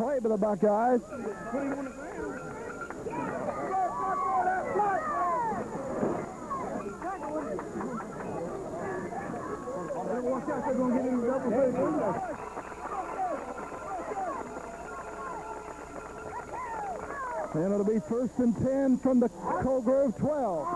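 Young men shout loudly nearby.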